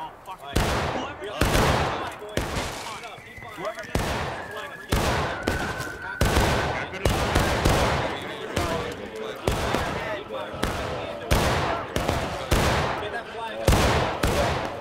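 Rifles fire in loud, repeated volleys that echo through the woods.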